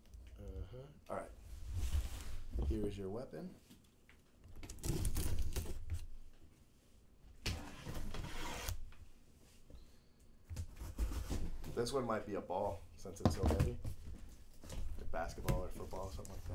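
A cardboard box scrapes and thumps as it is handled.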